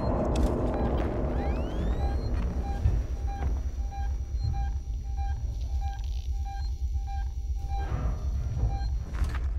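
A handheld motion tracker beeps steadily at an even pace.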